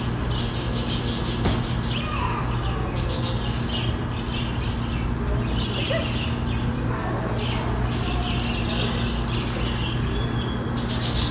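Many budgerigars chirp and chatter continuously.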